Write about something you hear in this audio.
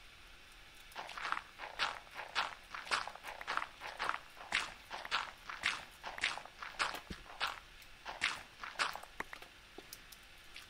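Gravel and stone crunch in quick, repeated bursts as blocks are dug away.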